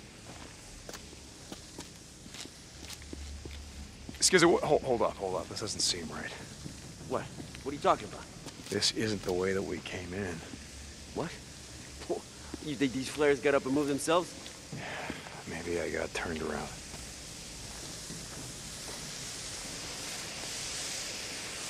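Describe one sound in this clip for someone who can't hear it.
Footsteps crunch slowly on a rocky floor.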